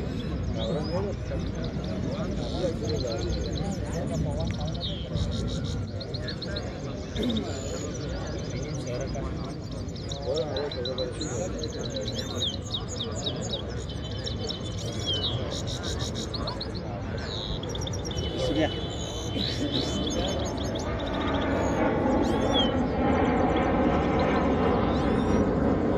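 Small songbirds sing rapid twittering songs close by.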